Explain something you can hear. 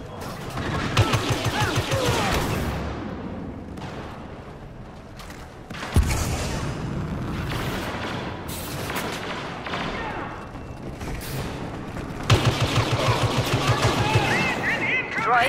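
Blaster shots fire in rapid bursts.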